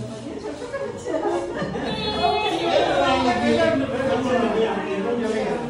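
Children chatter together in the background.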